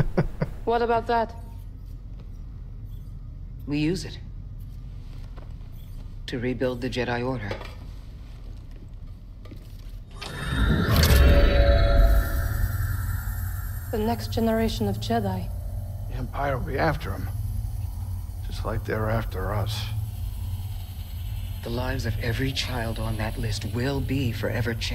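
A man speaks calmly in a low voice.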